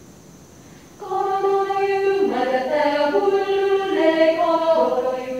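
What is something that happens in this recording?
A mixed choir sings in harmony in an echoing hall.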